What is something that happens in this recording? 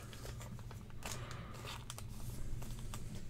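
A trading card rustles softly in a plastic sleeve as it is handled.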